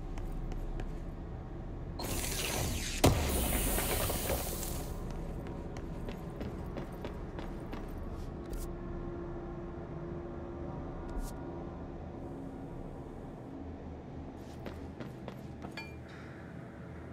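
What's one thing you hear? Footsteps tap on a hard floor and metal grating.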